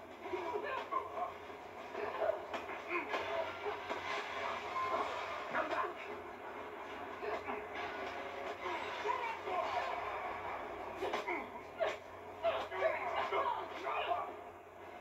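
Punches thud and bodies crash in a brawl, heard through a loudspeaker.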